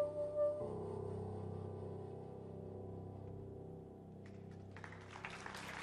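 A piano plays chords.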